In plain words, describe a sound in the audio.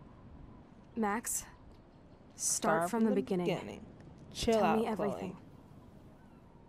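Another young woman talks with animation.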